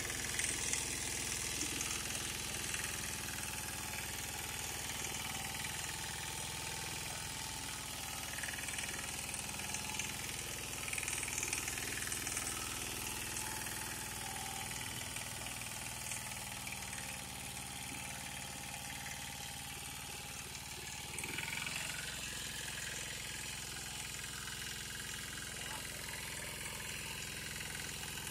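A single-cylinder diesel power tiller runs under load.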